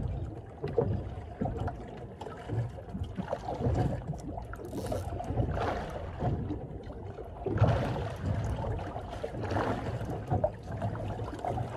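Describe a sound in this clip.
A fishing reel clicks as it is wound in.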